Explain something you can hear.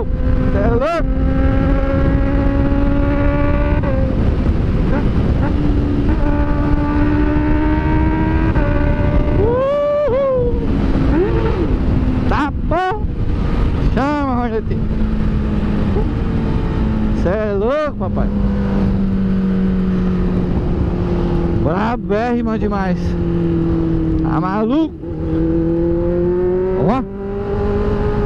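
A motorcycle engine drones steadily and revs up sharply between gear changes.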